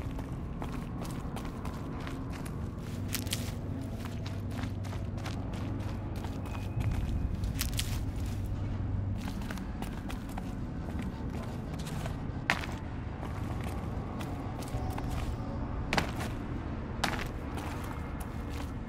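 Footsteps crunch on snow and stone.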